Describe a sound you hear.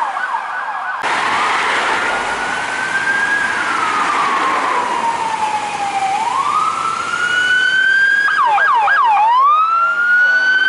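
A police siren wails, slowly rising and falling.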